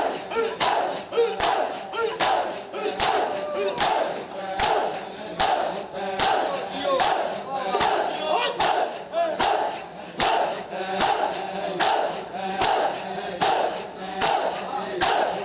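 A crowd of men slap their chests loudly in a steady rhythm.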